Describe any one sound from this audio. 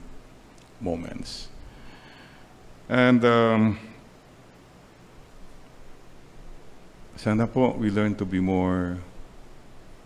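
An elderly man speaks slowly and calmly into a microphone, in short phrases with long pauses.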